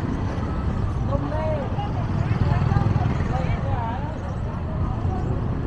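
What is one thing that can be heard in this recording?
Motorbike engines hum past on a busy street.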